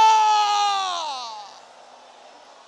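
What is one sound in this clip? A man sings a long high note loudly into a microphone, then the note falls away.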